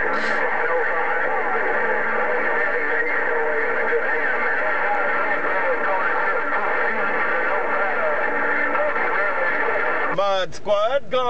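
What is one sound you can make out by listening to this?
A radio receiver hisses and crackles with a noisy, garbled transmission through its loudspeaker.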